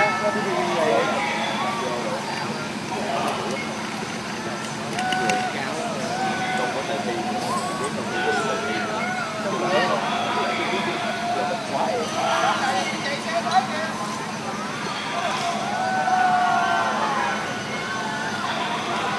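A crowd of men talk and call out outdoors.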